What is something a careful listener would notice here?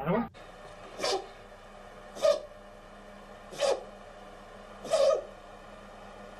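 A small dog barks sharply, several times.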